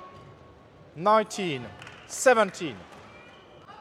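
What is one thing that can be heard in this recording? A young player shouts loudly in an echoing hall.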